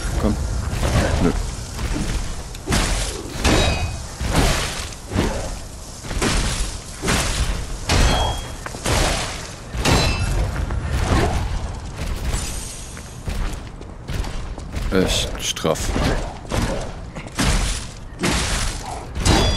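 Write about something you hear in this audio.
Electric crackles burst and sizzle.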